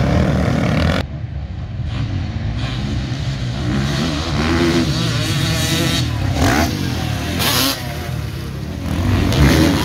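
Dirt bike engines whine and buzz in the distance, rising and falling as the bikes race by.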